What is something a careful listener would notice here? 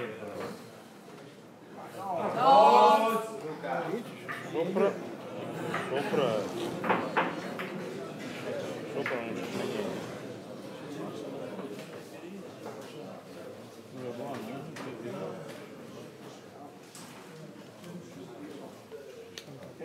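Several men talk and call out loudly nearby.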